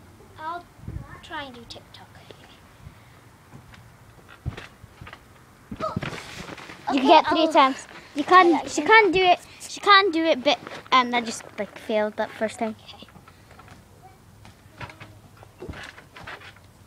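A trampoline mat thumps under landing feet.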